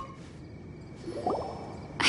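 Magic sparkles chime and shimmer.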